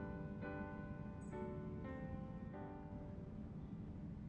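A piano plays a few notes that ring out in a large echoing hall.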